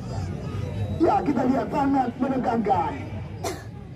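A crowd of spectators shouts excitedly.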